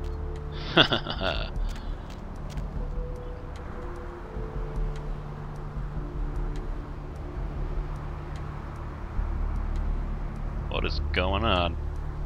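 Footsteps tread on a hard pavement.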